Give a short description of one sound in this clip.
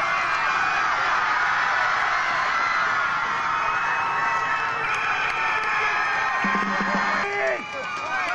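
A crowd cheers and shouts loudly outdoors.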